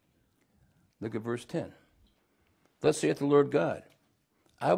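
An older man speaks calmly and steadily into a nearby microphone, with pauses between phrases.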